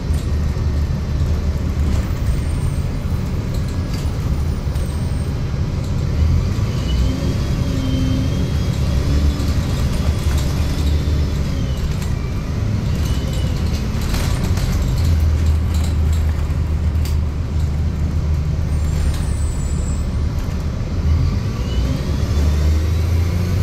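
A bus engine rumbles steadily from inside the bus.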